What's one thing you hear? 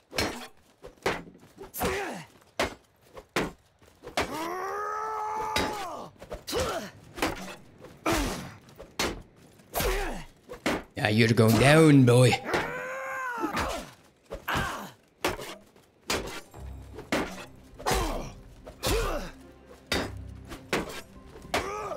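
Weapons clash against wooden shields in a fight.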